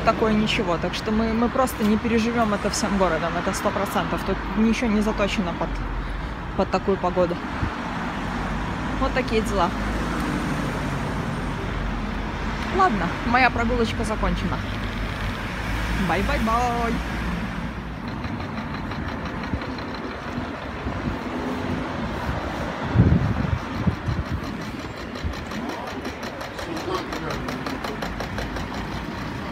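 Traffic hums along a city street.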